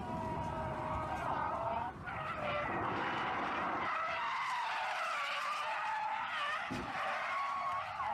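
A car engine revs hard as tyres squeal while drifting.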